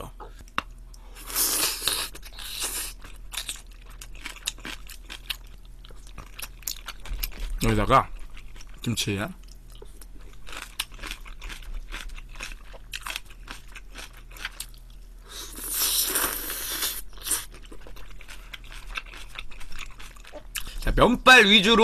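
A young man chews and smacks his lips close to a microphone.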